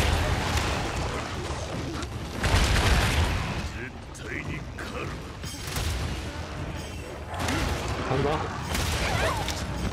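A large beast growls and roars.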